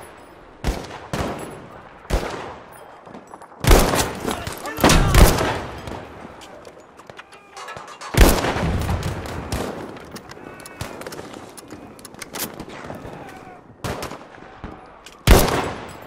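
Loud gunshots crack and echo repeatedly.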